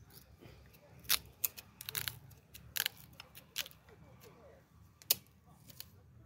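Dry palm fibres crack and snap as a hand pulls at them.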